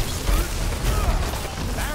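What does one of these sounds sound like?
A loud electric blast bursts and crackles.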